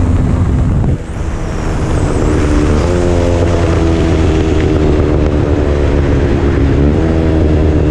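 A motorcycle engine drops briefly during a gear change, then climbs in pitch as it speeds up.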